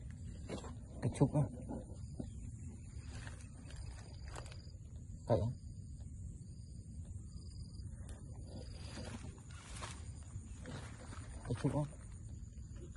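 Leaves and grass rustle and brush against the microphone.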